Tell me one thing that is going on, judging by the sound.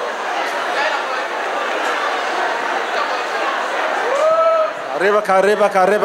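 Hands clap among the crowd.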